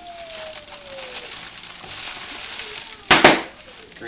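Plastic wrap crinkles in a man's hands.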